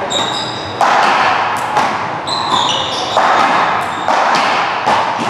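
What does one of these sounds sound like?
A hard ball smacks sharply against a wall and paddles, echoing around a large hall.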